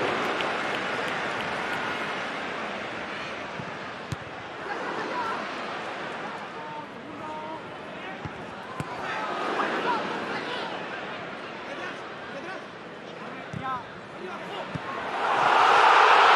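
A large stadium crowd murmurs and chants.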